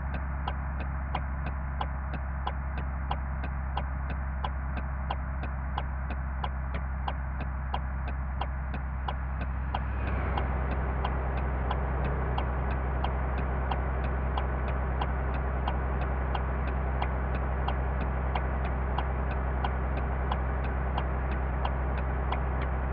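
A bus engine hums steadily and grows louder partway through.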